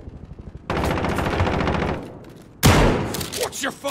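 A shotgun is reloaded with metallic clicks.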